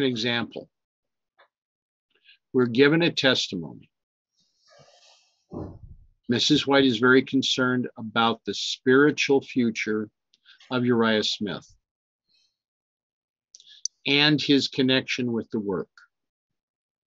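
A middle-aged man reads out calmly and closely into a microphone.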